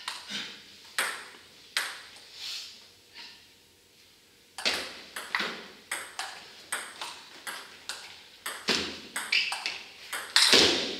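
A table tennis ball clicks back and forth off paddles and the table in a quick rally.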